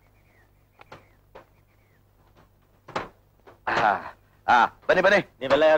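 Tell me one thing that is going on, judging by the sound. Footsteps thud on a van's wooden floor as a man climbs down.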